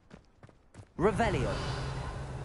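A magic spell whooshes with a rising shimmer.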